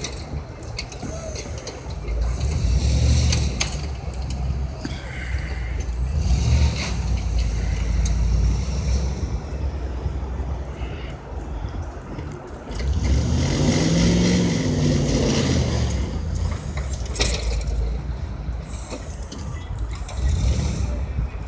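A snow plow blade scrapes and pushes snow.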